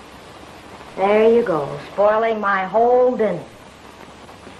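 A second woman answers with animation, close by.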